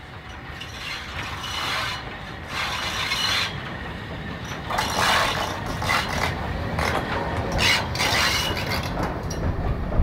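A steam tank locomotive chuffs past.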